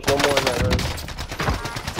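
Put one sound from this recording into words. A rifle fires a quick burst of loud gunshots.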